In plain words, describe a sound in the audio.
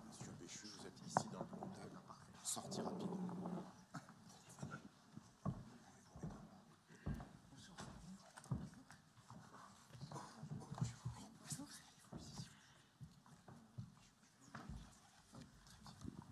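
An audience murmurs and chatters softly in a large hall.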